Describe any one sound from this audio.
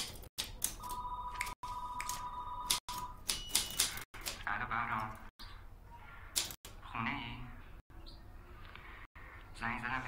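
A typewriter clacks with quick key strikes.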